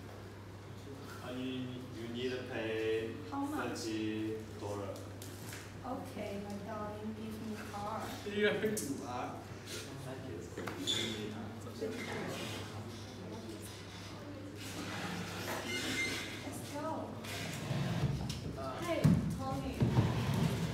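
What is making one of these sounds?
Teenage girls and boys talk and laugh nearby.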